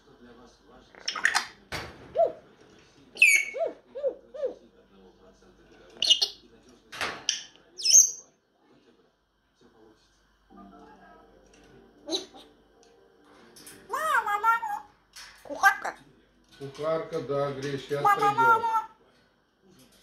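A parrot squawks, whistles and chatters in short bursts close by.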